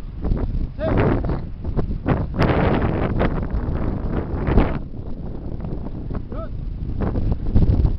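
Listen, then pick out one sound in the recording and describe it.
Wind rumbles across the microphone.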